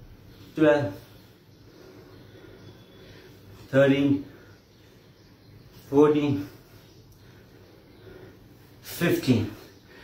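A man calls out short words loudly, close by, every few seconds.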